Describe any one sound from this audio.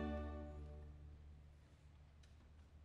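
An orchestra's final chord rings out and fades in an echoing hall.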